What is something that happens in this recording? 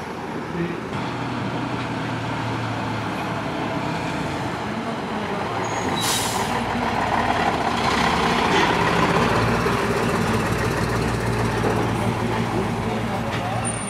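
A diesel truck engine rumbles loudly as the truck pulls past close by.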